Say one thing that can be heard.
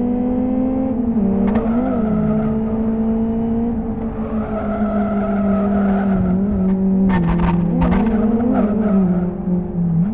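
Tyres screech in corners.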